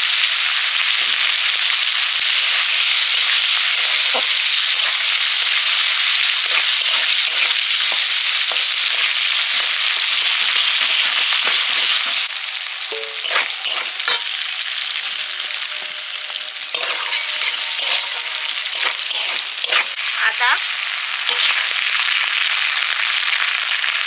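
A metal spatula scrapes and clinks against a pan.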